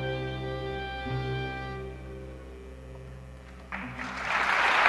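A fiddle plays a sustained melody.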